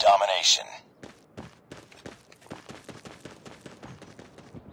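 Footsteps tread steadily on hard ground nearby.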